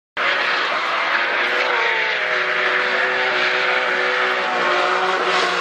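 A race car engine roars loudly at high revs.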